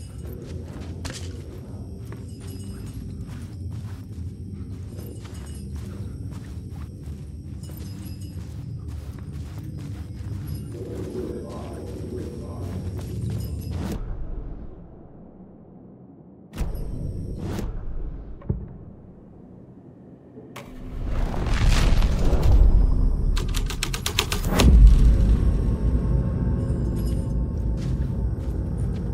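Footsteps tread slowly over a carpeted floor, crunching on scattered debris.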